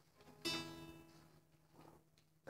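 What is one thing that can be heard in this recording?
A guitar string is strummed and rings out.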